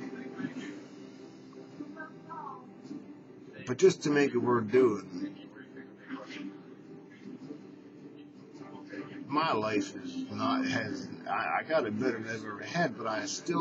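A middle-aged man talks close to a microphone in a calm, gravelly voice.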